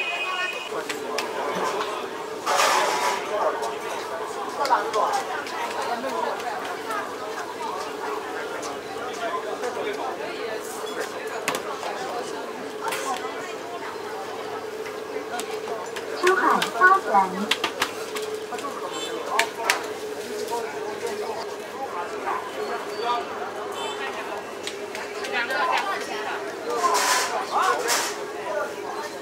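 Dough slaps and thumps on a metal counter.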